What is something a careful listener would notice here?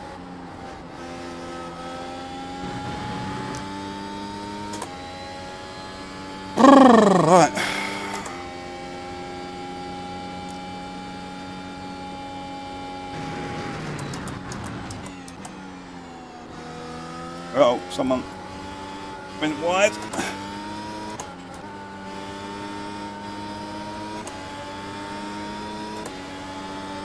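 A racing car engine drones steadily, rising in pitch and dropping with each gear change.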